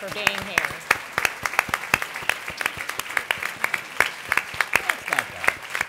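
A large crowd applauds in a big room.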